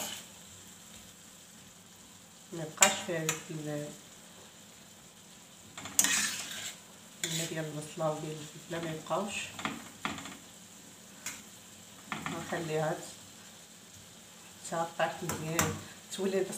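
A metal spoon scrapes and clinks against a frying pan.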